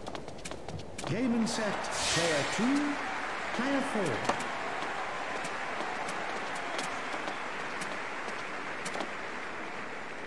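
A crowd cheers and applauds.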